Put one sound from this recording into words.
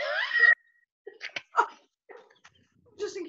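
A middle-aged woman laughs loudly over an online call.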